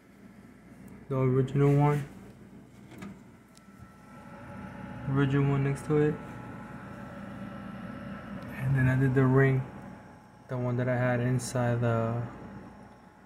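Computer fans whir softly and steadily.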